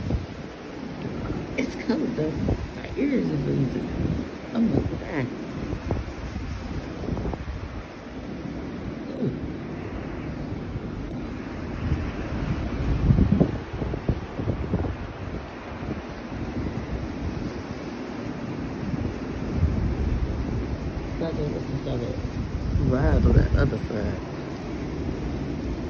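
Strong wind gusts roar and buffet outdoors.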